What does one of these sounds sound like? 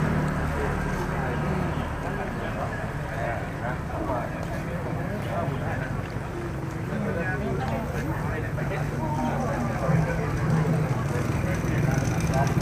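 Footsteps scuff on a paved road.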